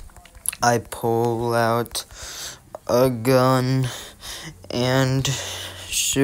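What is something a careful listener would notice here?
Phone keyboard keys tap softly as someone types.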